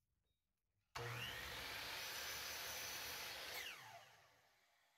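A power saw motor whines and then winds down.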